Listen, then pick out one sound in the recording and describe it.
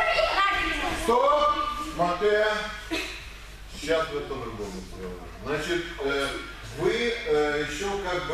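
A man speaks to a group in an echoing hall.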